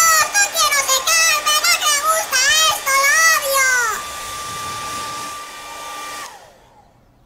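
A hair dryer blows with a steady whirr.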